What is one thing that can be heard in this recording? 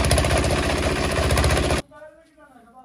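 A fodder cutting machine whirs and chops loudly.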